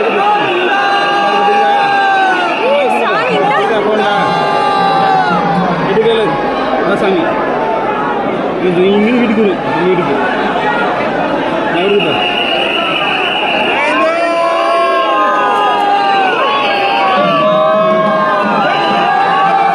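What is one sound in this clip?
A large crowd of men chants and shouts loudly all around.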